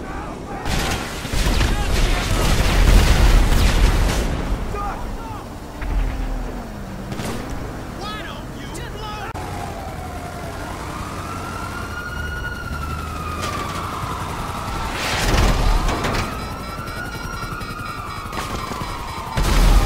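An armoured vehicle's engine roars as it drives.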